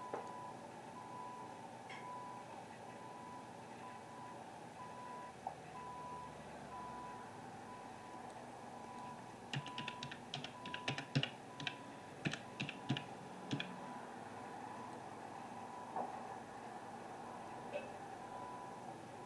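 A telehandler engine rumbles steadily.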